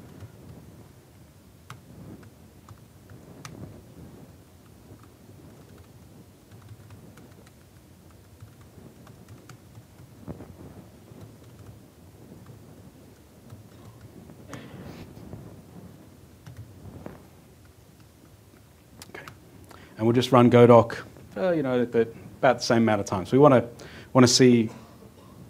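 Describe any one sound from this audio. A man speaks into a microphone, quietly at first and then with animation.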